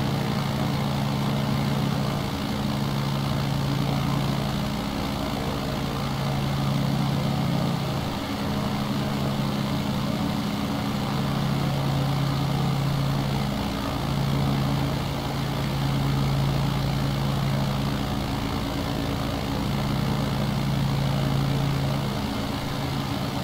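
A small propeller plane's engine drones steadily, its pitch wavering slightly.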